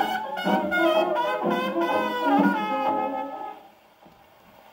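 Old jazz music plays from a gramophone record, tinny and scratchy.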